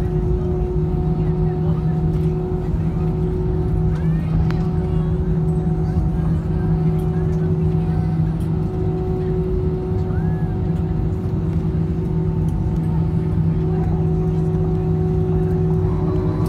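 The aircraft rumbles over the runway.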